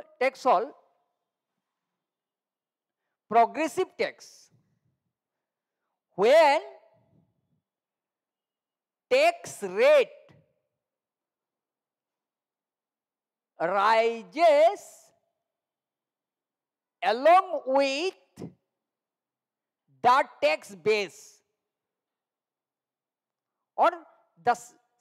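A man speaks calmly through a close headset microphone, in short phrases with long pauses.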